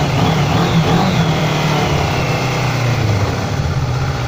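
A motorcycle engine revs up and then drops back.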